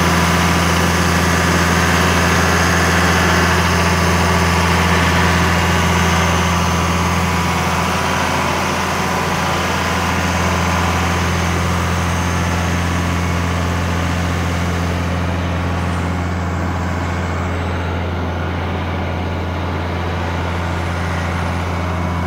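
A large diesel engine idles with a steady, deep rumble close by.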